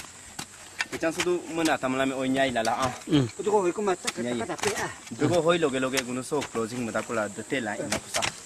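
A man speaks loudly, close by.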